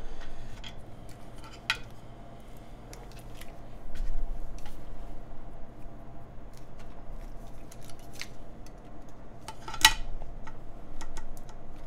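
Keys clack as fingers type on a mechanical keyboard.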